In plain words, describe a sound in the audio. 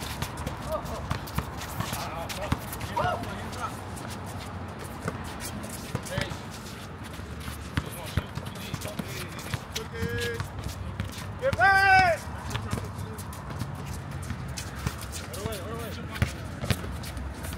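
Basketballs bounce on an outdoor court.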